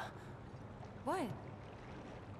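A young woman asks a short question calmly.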